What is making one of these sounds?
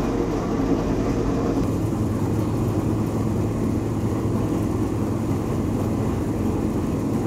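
A heavy machine rumbles and drones steadily.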